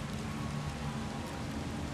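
A waterfall splashes and rushes steadily.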